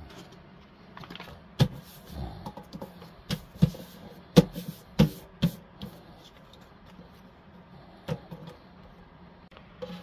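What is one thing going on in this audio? Paper sheets rustle and flap as they are handled.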